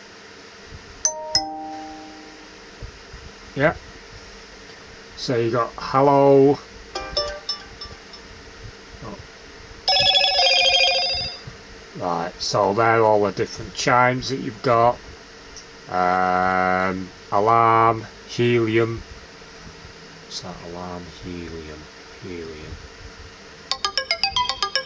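A phone plays short notification chimes and alert tones.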